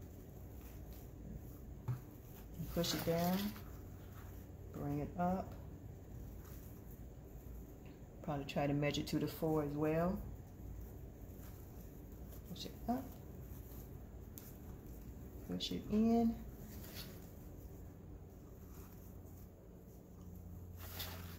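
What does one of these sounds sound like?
Ribbon rustles softly as hands fold and bunch it.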